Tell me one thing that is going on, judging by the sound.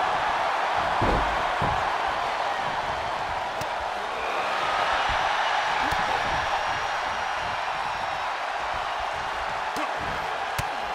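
Heavy blows thud as wrestlers strike each other.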